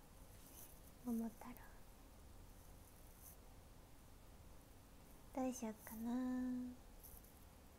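A young woman speaks briefly and softly, close to a microphone.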